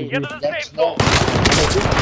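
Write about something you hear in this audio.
A gun fires a quick burst of shots.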